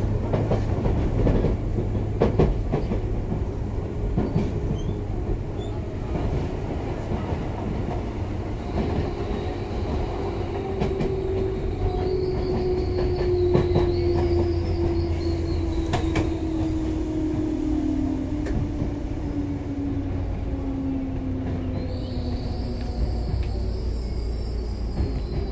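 A train rumbles low and steady on the tracks close by.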